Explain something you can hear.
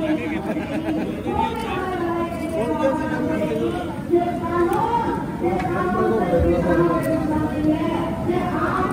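A metal ladle sloshes and stirs thick syrup in a large pot.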